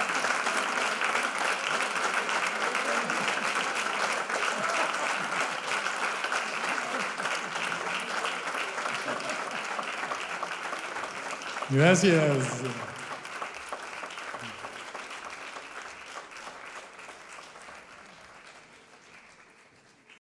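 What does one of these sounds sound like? An audience applauds loudly in a large hall, slowly fading away.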